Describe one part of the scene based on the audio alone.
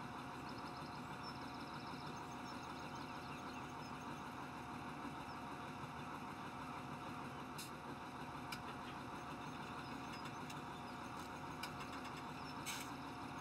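A plough scrapes through the soil.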